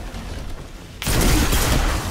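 A rifle fires a loud shot with a booming echo.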